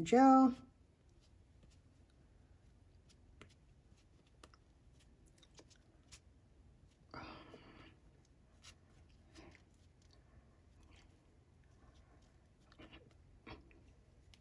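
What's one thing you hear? A brush dabs and strokes on paper.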